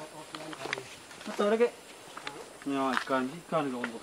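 Sandals scuff and slap on a muddy forest path.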